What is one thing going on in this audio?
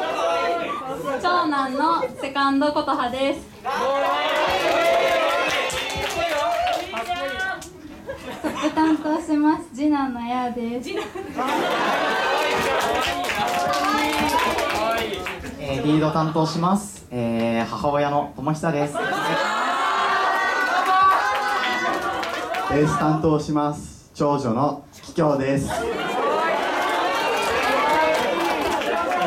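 Young women and young men talk with animation through microphones over loudspeakers.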